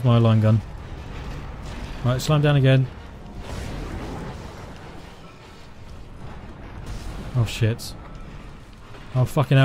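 A monster screeches and snarls up close.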